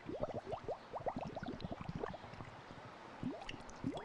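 Water drips and splashes softly.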